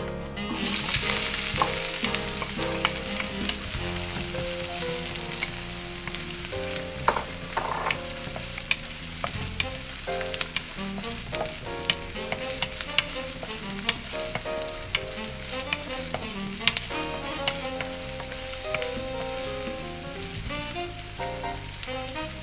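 Chopped onion sizzles in a hot pan.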